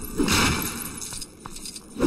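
Small plastic pieces clatter and scatter as an object breaks apart.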